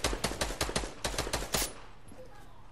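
Wooden panels clack rapidly into place.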